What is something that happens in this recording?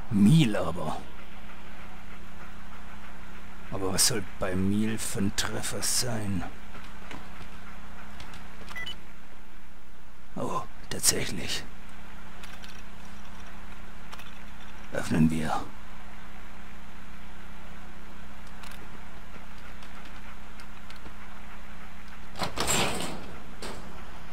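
A computer terminal hums steadily.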